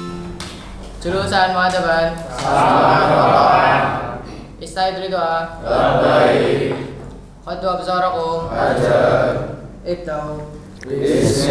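A young man speaks aloud in a calm, chanting voice.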